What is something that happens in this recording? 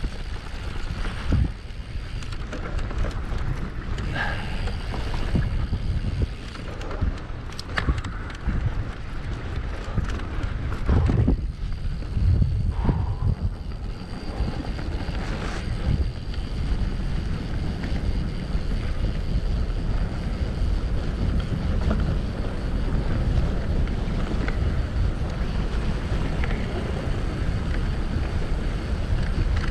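Bicycle tyres roll and bump over a grassy dirt track.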